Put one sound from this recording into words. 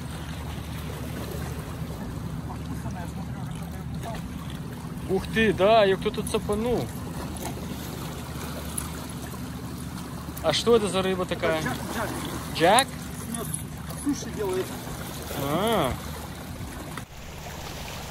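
Shallow water sloshes around a man wading.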